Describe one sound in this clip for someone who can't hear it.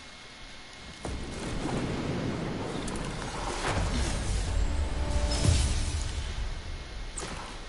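Wind rushes loudly, rising and then fading away.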